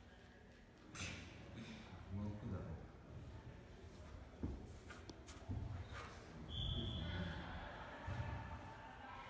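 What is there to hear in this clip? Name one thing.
Bodies shift and thud softly on a padded mat.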